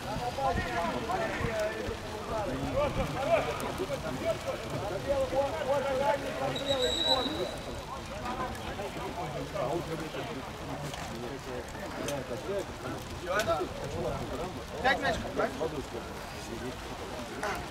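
Men shout to each other across an open pitch outdoors.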